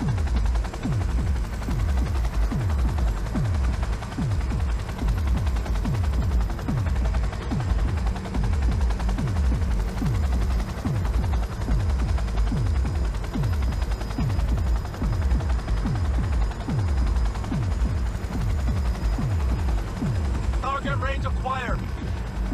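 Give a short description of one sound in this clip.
A helicopter's rotor thumps steadily and quickly.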